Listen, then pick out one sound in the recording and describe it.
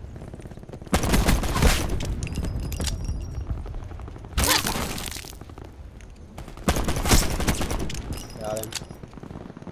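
Gunshots crack loudly in short bursts.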